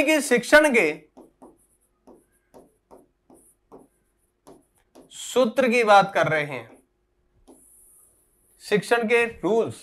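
A marker squeaks faintly on a board.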